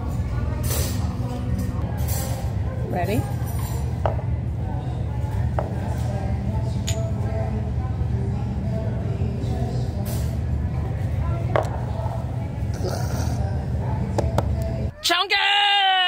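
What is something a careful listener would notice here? People chatter in a busy room with a low steady hum.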